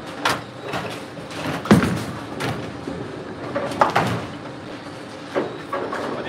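A bowling ball rolls down a lane and crashes into pins.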